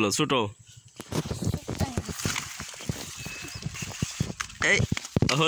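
Leaves rustle and snap as a plant is handled.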